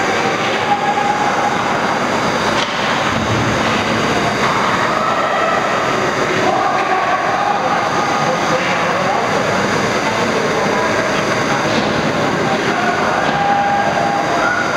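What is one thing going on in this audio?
Skates scrape and carve across the ice in a large echoing arena.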